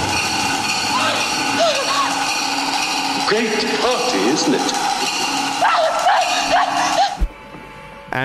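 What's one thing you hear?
A woman screams in terror.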